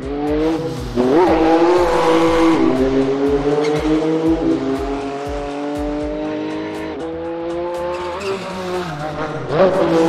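A rally car engine revs hard and shifts gears.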